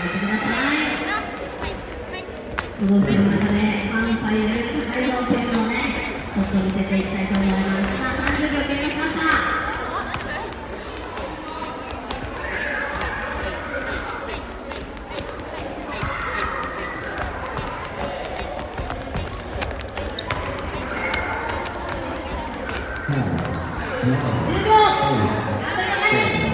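A crowd of children chatters and calls out in a large echoing hall.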